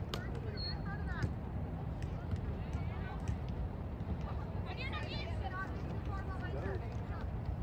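Young women shout to each other across an open outdoor field.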